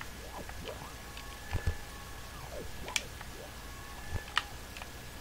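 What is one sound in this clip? Short whooping game sound effects glide up and down in pitch.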